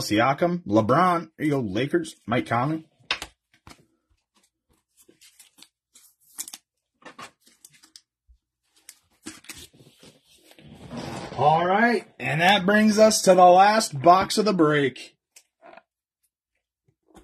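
Plastic card holders click and tap softly in hands.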